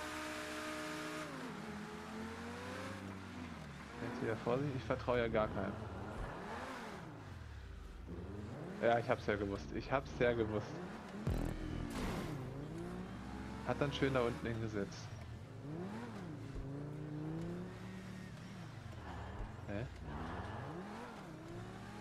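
A sports car engine revs up and down.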